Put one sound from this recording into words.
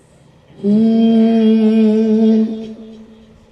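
A man sings a long held note through a microphone and loudspeakers.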